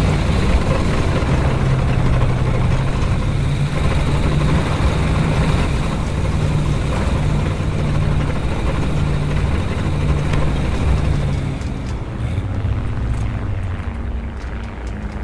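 Tank tracks clank and squeak over the ground.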